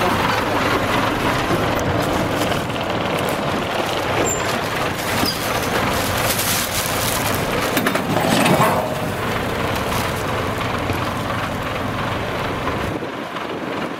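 A heavy truck engine rumbles nearby.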